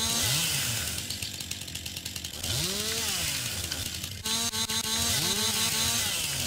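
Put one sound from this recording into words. A chainsaw engine revs up and down repeatedly.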